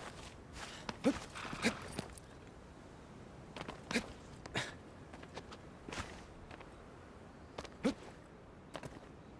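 Hands scrape and grip on stone while climbing.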